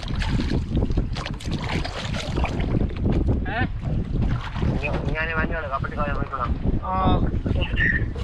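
Water splashes against the side of a boat.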